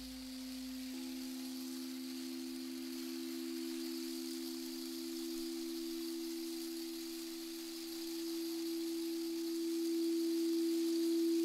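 A new singing bowl tone comes in and swells louder.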